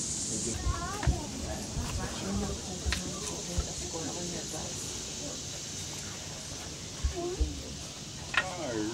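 A knife taps and scrapes on wood.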